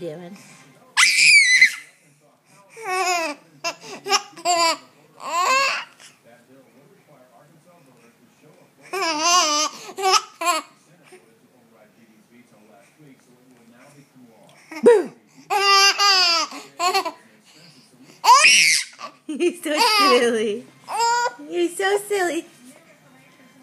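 A baby giggles and squeals with laughter up close.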